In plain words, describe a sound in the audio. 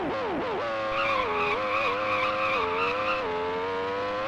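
Tyres squeal in a corner.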